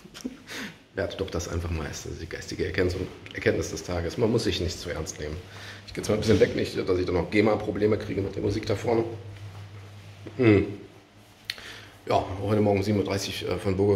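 A middle-aged man talks calmly and close up, as if into a phone microphone.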